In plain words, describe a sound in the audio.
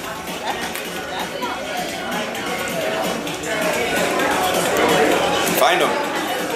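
A crowd of men and women chats nearby in a room.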